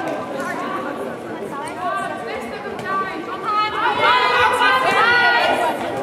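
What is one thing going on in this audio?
Young women shout and call out to each other across a large echoing hall.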